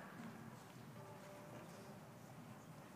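Orchestra instruments play quiet tuning notes.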